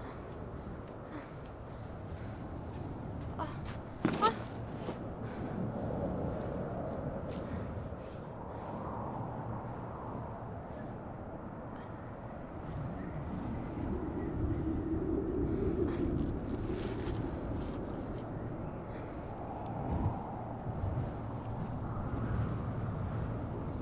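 Strong wind gusts and roars outdoors.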